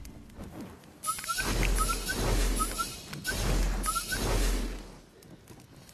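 A guitar is swung and struck with loud, crashing blows.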